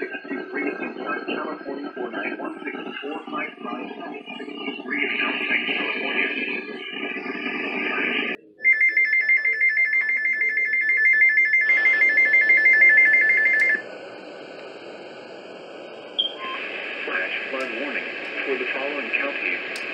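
A synthetic voice reads out steadily through a small radio speaker.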